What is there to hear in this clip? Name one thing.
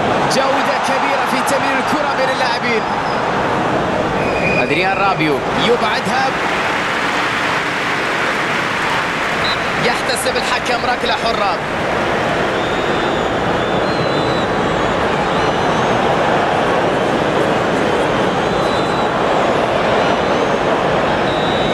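A large crowd roars and cheers steadily in a stadium.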